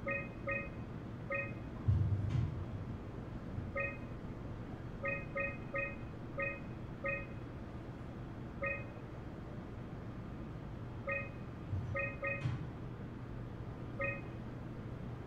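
Short electronic beeps sound as buttons are pressed.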